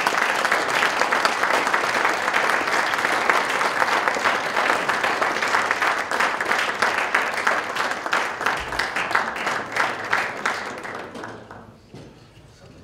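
An audience applauds loudly, then the clapping fades.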